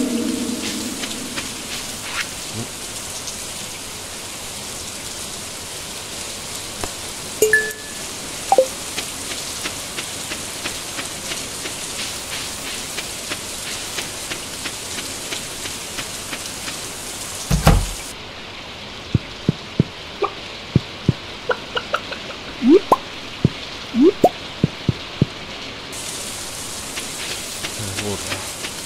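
Rain falls steadily outdoors.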